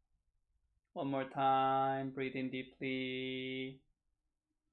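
A middle-aged man sings long, steady held tones.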